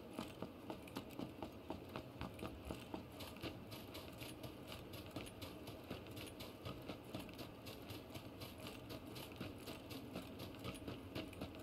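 Footsteps run quickly over asphalt and then through grass.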